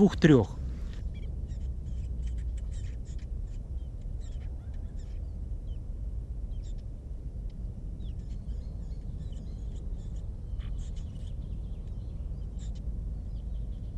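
Nestlings cheep softly and repeatedly.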